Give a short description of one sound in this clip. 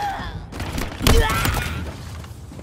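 A bladed weapon slashes with a wet, crunching impact.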